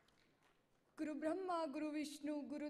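A young woman speaks clearly into a microphone over loudspeakers.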